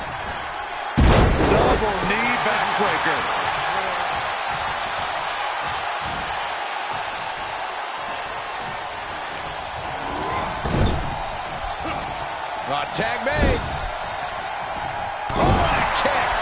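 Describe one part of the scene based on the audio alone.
Heavy bodies slam down onto a wrestling ring mat with loud thuds.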